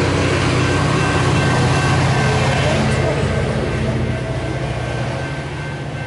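A diesel locomotive rumbles past with a passing train.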